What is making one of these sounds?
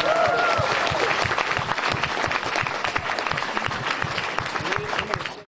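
A crowd claps and applauds loudly in a large hall.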